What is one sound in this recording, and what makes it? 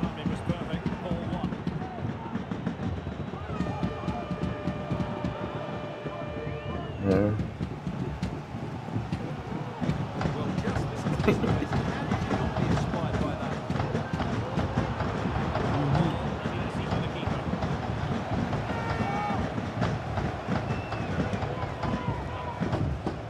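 A stadium crowd murmurs and cheers steadily throughout.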